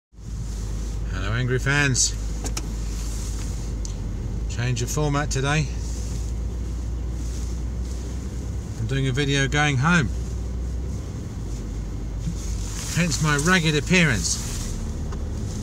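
A man speaks close to the microphone in short bursts.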